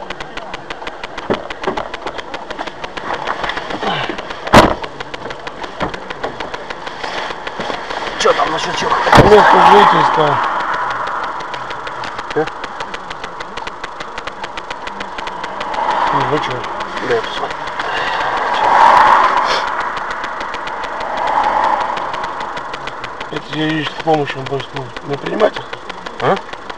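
A car engine idles nearby.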